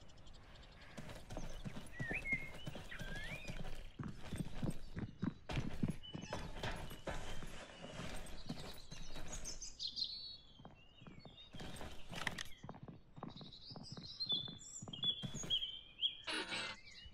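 Heavy boots thud on concrete stairs and floors.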